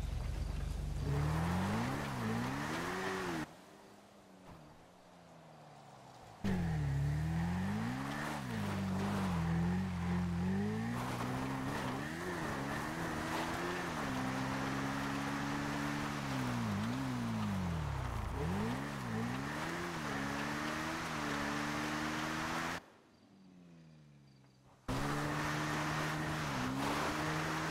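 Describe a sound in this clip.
A motorcycle engine revs up and down while riding.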